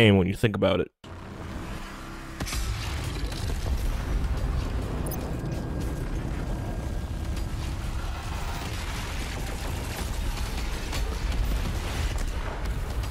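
A heavy gun fires rapid blasts.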